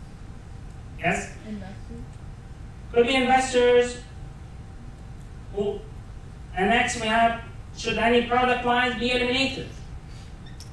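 A man lectures calmly through a microphone, with pauses between phrases.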